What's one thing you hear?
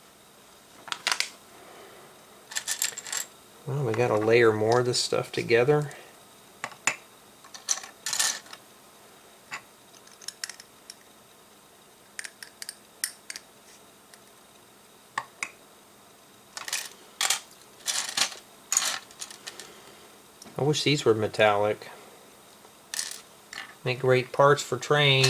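Plastic bricks click and clatter as they are handled.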